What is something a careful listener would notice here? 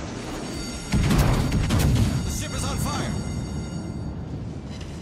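Shells explode loudly against a ship.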